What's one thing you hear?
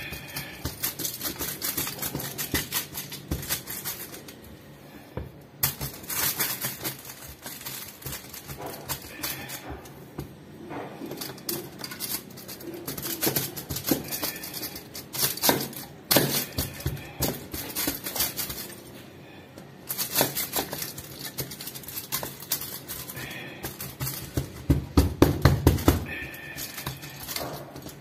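Metal scrapes and clinks close by.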